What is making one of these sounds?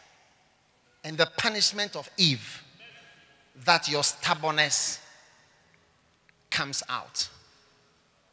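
A man speaks calmly into a microphone, in short phrases with pauses, in a room with some echo.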